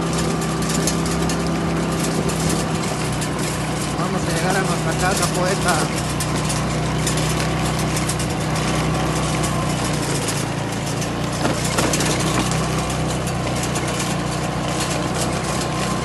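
Tyres rumble and crunch over a rough cobbled track.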